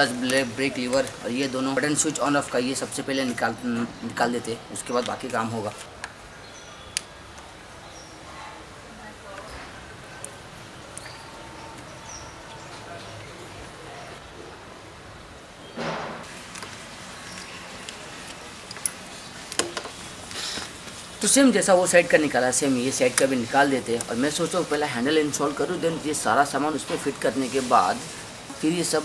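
A young man talks calmly, close by.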